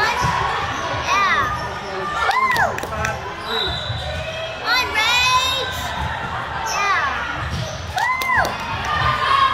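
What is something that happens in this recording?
A volleyball thuds as players hit it.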